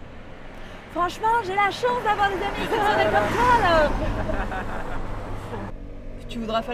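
Young women laugh close by.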